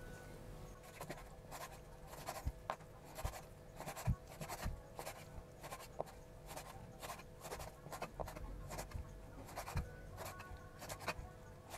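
A knife chops through meat onto a wooden board with repeated knocks.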